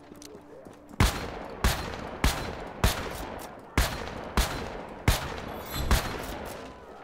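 Gunshots fire one after another and echo.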